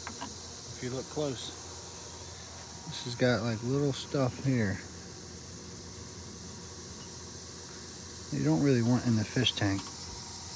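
A man talks casually up close.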